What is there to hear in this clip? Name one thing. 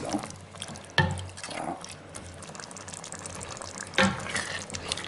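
A wooden spoon knocks against the rim of a metal pot.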